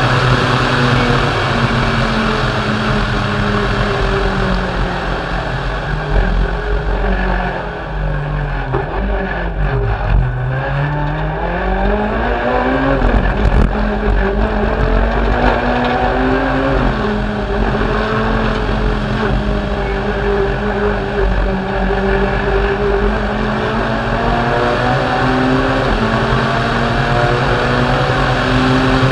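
A rally car engine roars loudly, revving up and dropping as the gears shift.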